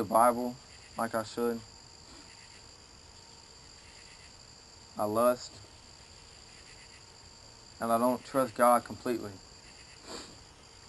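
A young man reads out loud in short bursts outdoors.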